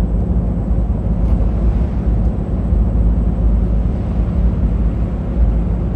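Another truck rumbles past close by.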